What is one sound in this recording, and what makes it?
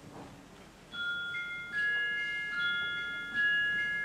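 A wind orchestra plays in a large hall.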